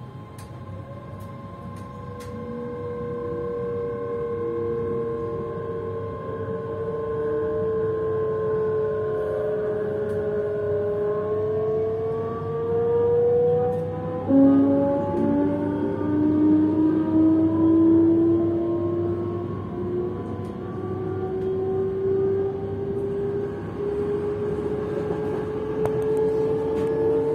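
Motors whine from inside a passenger train, rising in pitch as it gathers speed.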